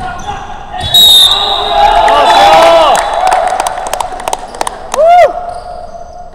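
Basketball sneakers squeak on a hardwood court.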